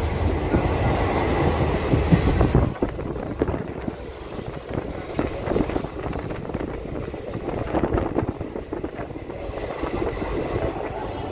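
Wind rushes and buffets past an open vehicle window.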